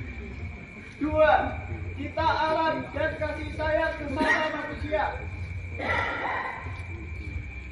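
A crowd of men and women chant loudly together outdoors.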